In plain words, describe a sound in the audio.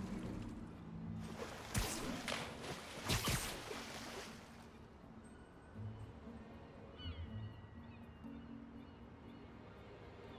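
Water laps gently, with a soft low rumble.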